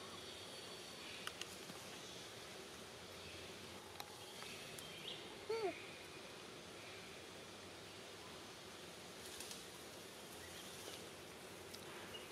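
A young monkey chews and nibbles food close by.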